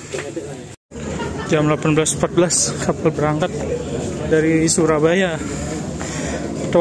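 Several people chat in the background outdoors.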